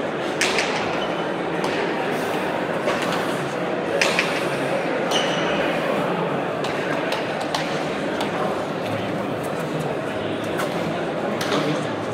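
A hard ball smacks sharply against a wall again and again, echoing through a large hall.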